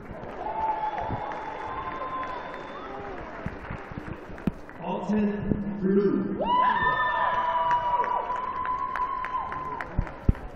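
Young audience members cheer and shriek loudly close by in a large hall.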